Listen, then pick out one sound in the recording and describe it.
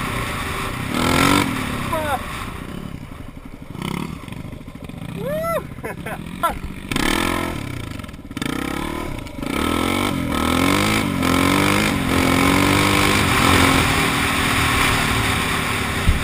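A dirt bike engine revs and roars up close.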